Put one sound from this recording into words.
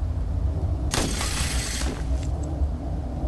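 A cloth glider snaps open with a loud whoosh.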